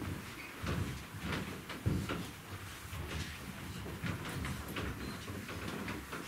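Children's footsteps patter across a wooden stage.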